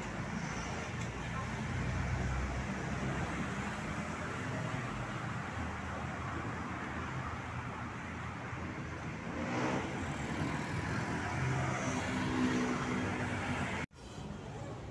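Traffic hums steadily along a street outdoors.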